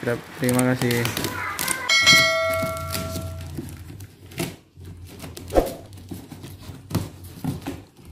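Packing tape rips and crackles as it is pulled off a cardboard box.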